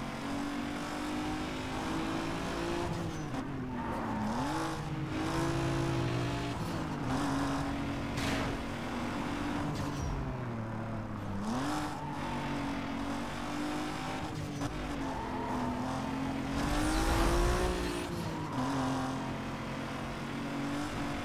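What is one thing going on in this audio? Tyres hiss on the road as a car speeds along.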